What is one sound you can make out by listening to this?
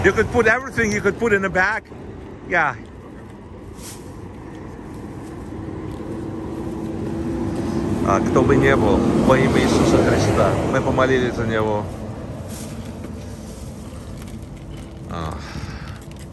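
A man speaks close by in a calm voice.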